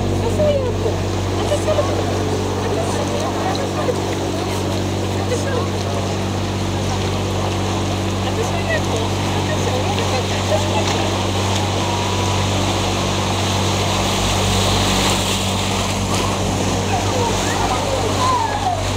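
A boat engine hums steadily and low.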